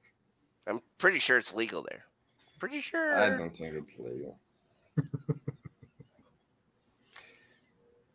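A young man speaks and laughs over an online call.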